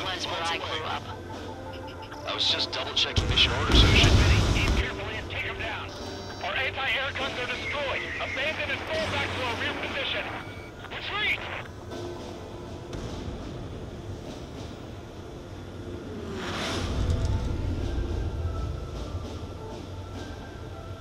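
A jet engine roars steadily, swelling louder at times.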